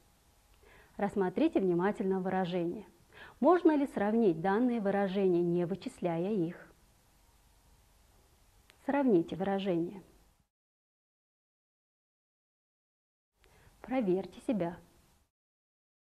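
A young woman speaks calmly and clearly, close to a microphone.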